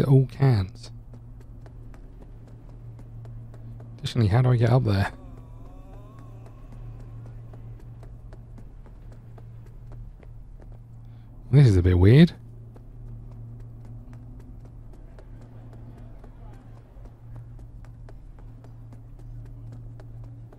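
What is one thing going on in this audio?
Footsteps tap steadily on hard pavement.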